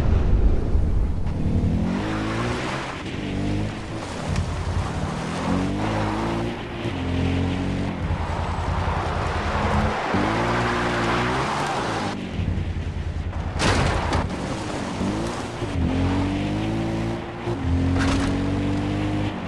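Grass and brush swish under the tyres of a quad bike.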